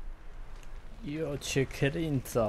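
A man speaks with animation close to a headset microphone.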